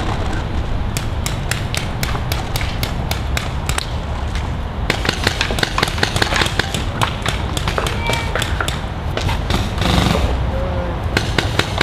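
A paintball marker fires rapid bursts of sharp shots outdoors.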